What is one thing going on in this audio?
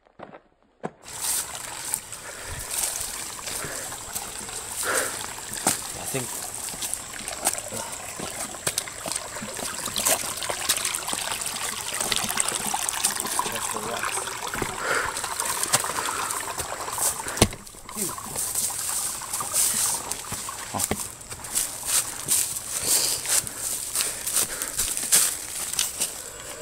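Footsteps crunch quickly through dry leaves and twigs.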